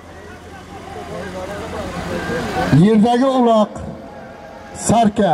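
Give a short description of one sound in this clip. A crowd of men shouts and calls out outdoors.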